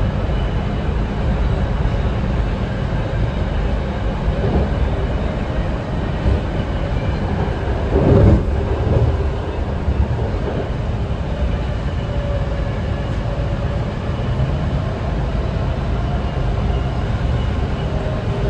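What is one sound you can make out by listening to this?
A train rumbles and rattles steadily along the tracks.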